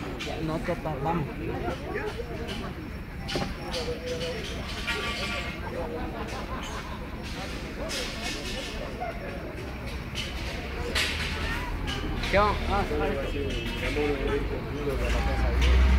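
A crowd of people chatter nearby outdoors.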